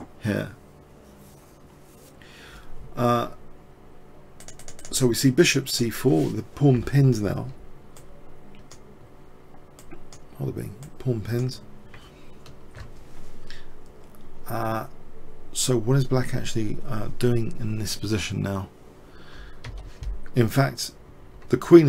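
A man talks calmly and steadily, close to a microphone.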